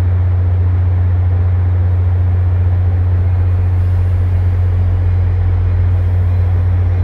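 A train's diesel engine idles close by with a loud, steady low rumble.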